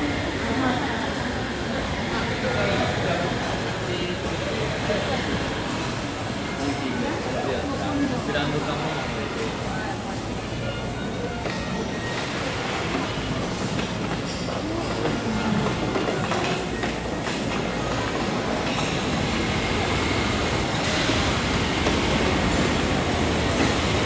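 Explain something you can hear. Footsteps of many people walk on a hard floor.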